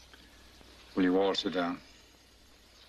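An older man speaks briefly and calmly, close by.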